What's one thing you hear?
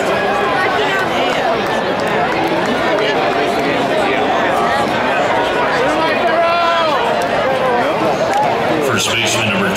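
A large crowd cheers and chatters outdoors.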